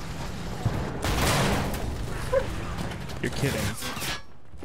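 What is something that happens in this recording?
A loud explosion crashes close by, followed by crackling debris.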